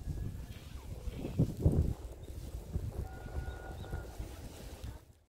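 Wind gusts outdoors and rumbles against the microphone.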